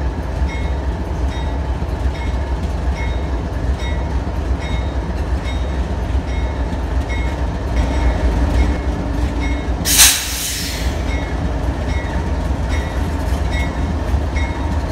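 A diesel locomotive engine rumbles deeply and steadily close by.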